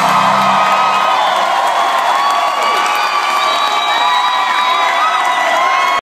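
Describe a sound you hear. A rock band plays loudly on stage in a large echoing hall.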